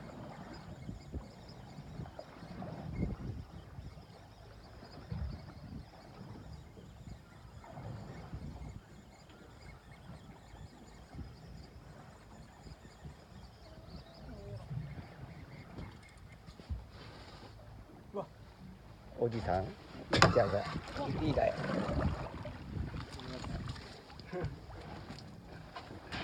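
Wind blows across open water outdoors.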